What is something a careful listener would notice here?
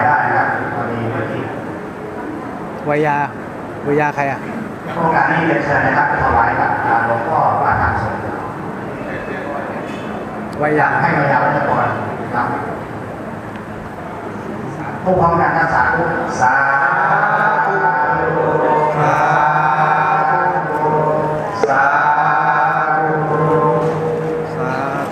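A crowd of men and women murmurs and talks in a large echoing hall.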